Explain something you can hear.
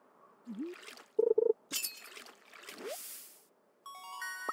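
A fish splashes out of the water.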